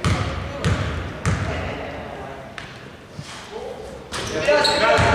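A basketball bounces on a wooden court in a large echoing hall.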